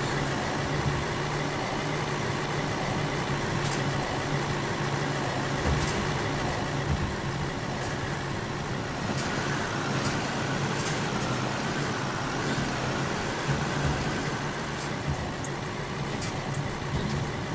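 A truck engine rumbles steadily as it climbs.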